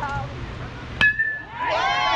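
A metal bat cracks against a ball.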